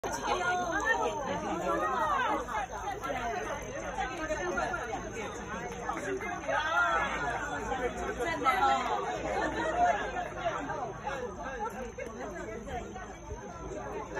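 A crowd of men and women chats and talks close by outdoors.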